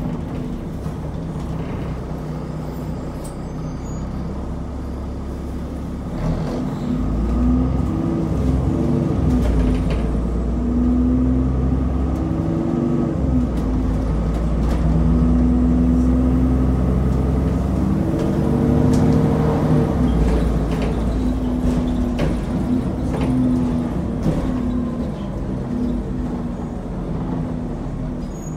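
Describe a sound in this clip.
A bus engine hums and rumbles steadily, rising and falling in pitch as the bus speeds up and slows.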